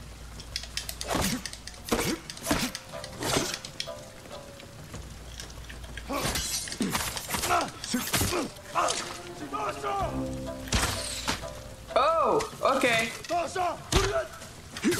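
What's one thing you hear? Swords clash and clang in quick bursts.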